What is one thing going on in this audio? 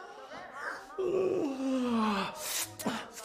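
A man lets out a loud, falling scream.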